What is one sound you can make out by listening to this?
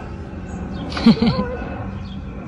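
A little girl squeals briefly up close.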